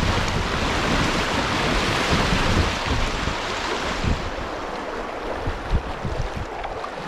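Shallow water rushes and splashes over rocks close by, then quietens.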